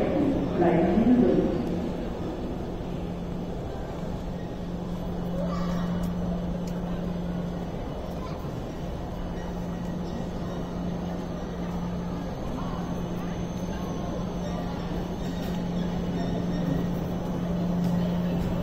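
A stationary train hums steadily in a large echoing hall.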